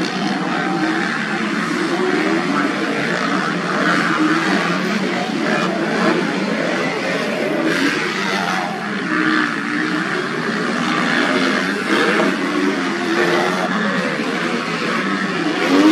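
Motorcycle engines roar and rev as dirt bikes race past.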